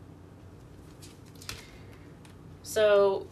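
Cards rustle softly as they are shuffled and laid down.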